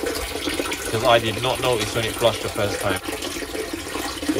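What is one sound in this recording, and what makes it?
Water pours from a pipe and splashes into standing water.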